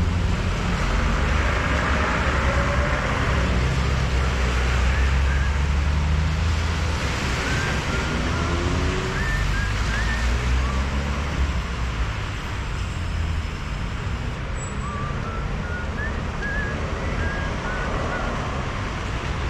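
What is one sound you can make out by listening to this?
Cars drive past on a wet road, tyres hissing.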